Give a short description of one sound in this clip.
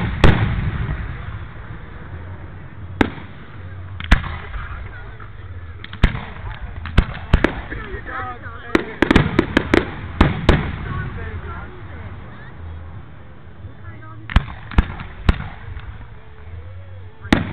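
Fireworks burst with loud, sharp bangs that echo outdoors.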